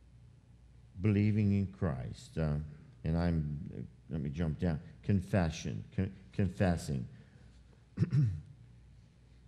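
An elderly man speaks calmly through a microphone.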